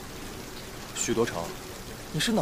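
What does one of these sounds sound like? A young man speaks in a surprised tone, close by.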